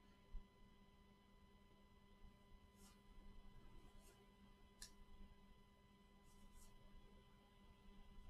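Trading cards slide softly against one another.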